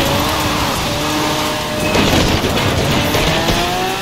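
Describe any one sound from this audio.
A car crashes through objects with loud thuds and cracks.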